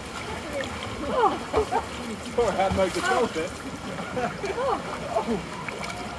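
Water splashes as a swimmer kicks.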